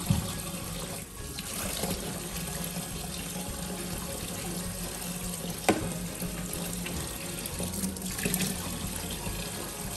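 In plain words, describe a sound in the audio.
A sponge squelches as it is squeezed and scrubbed.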